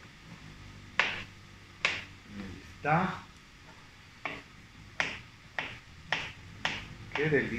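A knife chops on a cutting board in sharp taps.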